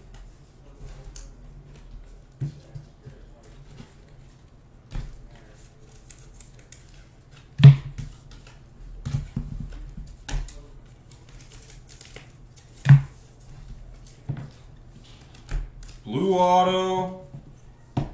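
Trading cards rustle and slide as they are flipped through by hand.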